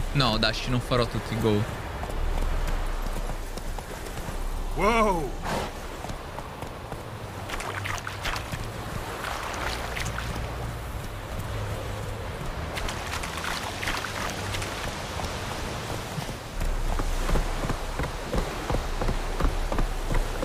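A horse's hooves clop steadily on a dirt path.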